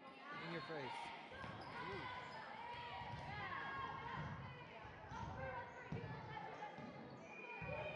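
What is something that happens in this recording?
A volleyball is hit with a sharp smack.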